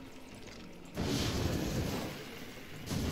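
A flamethrower roars with a burst of fire.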